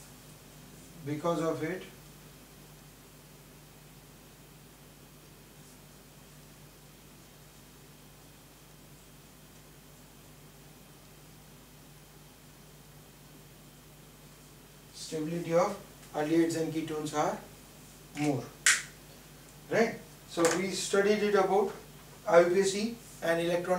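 A man speaks calmly and clearly, as if explaining.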